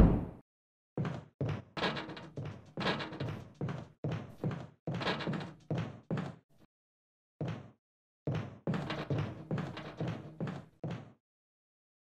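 Footsteps walk steadily across a wooden floor.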